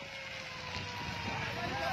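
Flames roar and crackle through dry grass.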